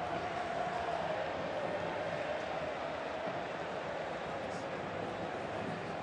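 A large crowd roars and cheers loudly and steadily.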